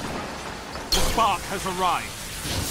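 A bright energy burst goes off with a sharp crack.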